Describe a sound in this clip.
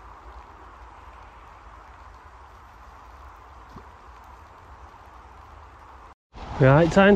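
Water of a river flows gently in the open air.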